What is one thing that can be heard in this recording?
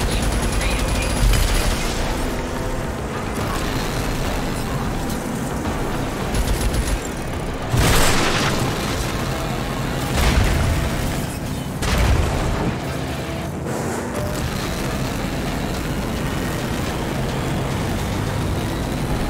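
A vehicle engine roars steadily as it drives over rough ground.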